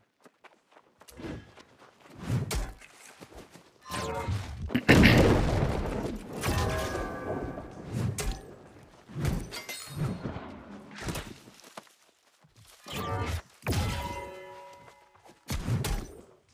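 Weapon strikes thud and clang in a fight.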